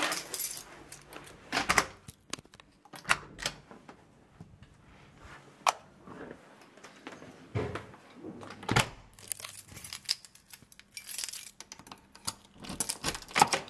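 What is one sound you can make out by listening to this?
A door handle clicks as it is pressed down.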